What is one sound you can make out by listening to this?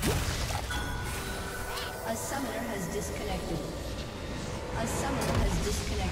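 Game spell effects crackle and clash in a fight.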